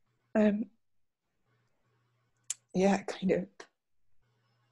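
A woman speaks briefly and close up, as if on an online call.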